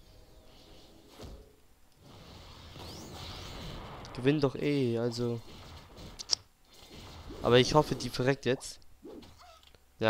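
Game fighting effects whoosh and clash.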